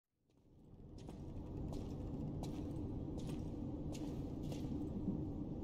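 Footsteps tread slowly on a hard stone floor.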